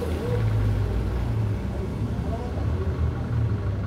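Car tyres hiss on wet pavement.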